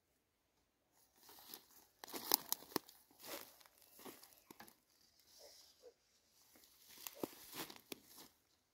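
Thin strips of bamboo rustle, scrape and clatter close by.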